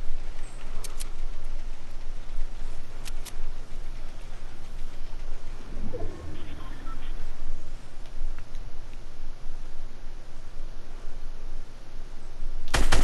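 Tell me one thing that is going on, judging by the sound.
Building pieces snap into place with short, sharp clicks.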